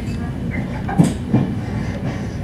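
Train wheels knock over rail joints.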